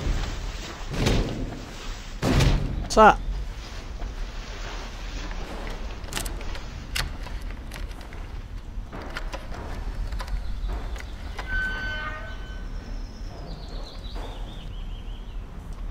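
Footsteps thud on hard ground.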